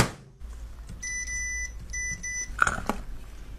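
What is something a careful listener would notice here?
An appliance beeps several times.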